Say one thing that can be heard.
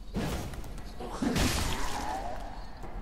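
A sword swings with a sharp whoosh.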